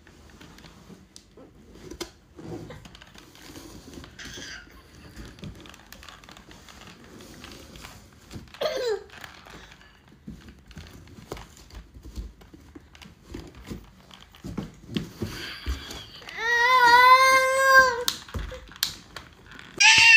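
A plastic bottle crinkles in small hands.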